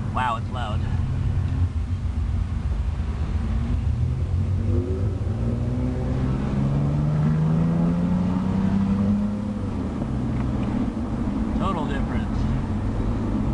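A car engine hums steadily inside the car.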